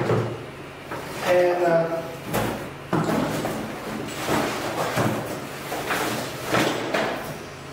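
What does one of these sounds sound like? Items rustle and knock inside a cardboard box.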